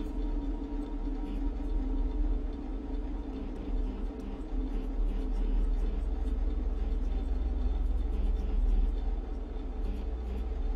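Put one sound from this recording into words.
A low, steady electrical hum drones throughout.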